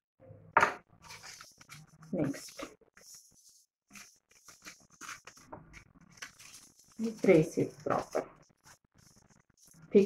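Paper crinkles and rustles softly.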